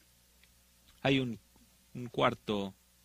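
An elderly man speaks emphatically, as if preaching through a microphone.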